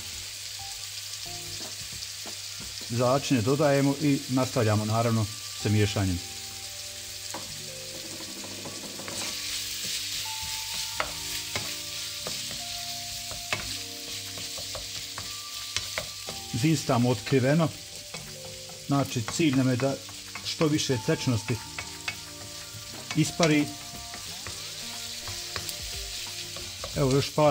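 Food sizzles softly in a frying pan.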